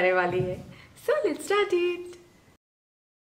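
A young woman speaks cheerfully and close by.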